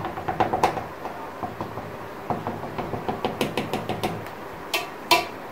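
A fork pokes and taps against dough in a metal pan.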